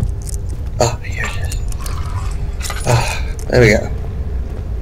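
Liquid sloshes as a lantern is refilled.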